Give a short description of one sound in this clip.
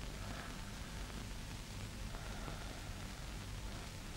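An elderly man speaks quietly.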